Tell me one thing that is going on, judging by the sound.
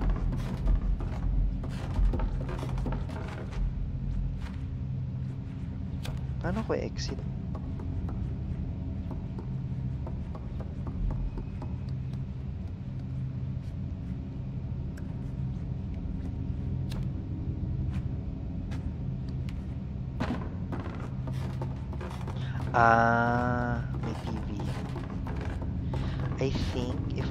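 Small footsteps patter across creaking wooden floorboards.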